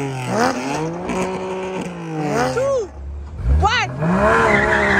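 Sports car engines rev loudly, rising and falling sharply in pitch.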